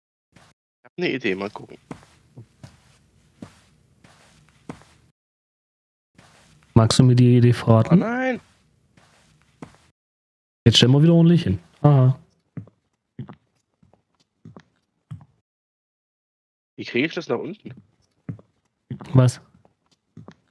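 A young man talks with animation close to a microphone, in bursts.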